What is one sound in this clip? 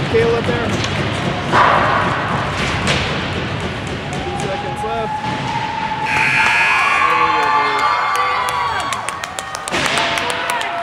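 Skates scrape across ice in a large echoing arena.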